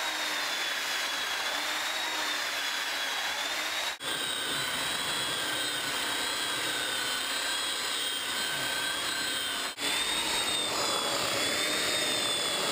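A belt sander whines steadily as it grinds across a wooden floor.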